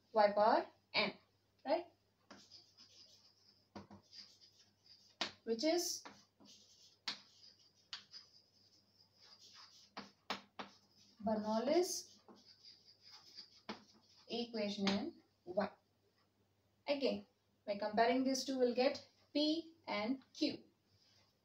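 A young woman speaks calmly, close by, explaining.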